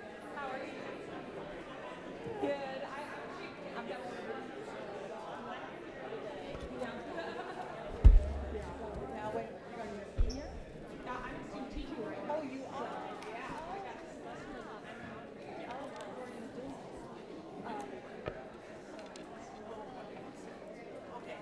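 A woman speaks calmly through a microphone in a large echoing hall.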